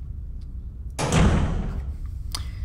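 A heavy metal door slams shut.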